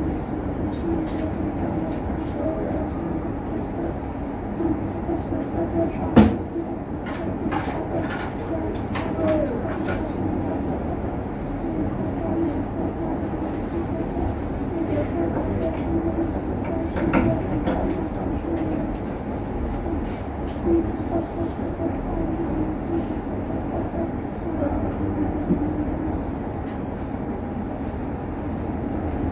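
An elderly man chants or reads aloud in a low, steady voice.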